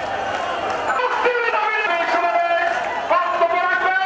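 A man shouts slogans through a loudspeaker.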